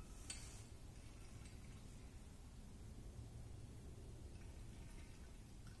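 Water trickles softly as it is poured into a glass funnel.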